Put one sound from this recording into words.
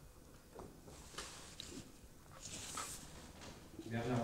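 Paper rustles as sheets are handled.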